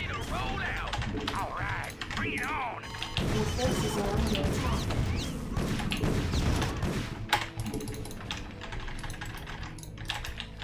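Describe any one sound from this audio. Video game gunfire and explosions crackle in quick bursts.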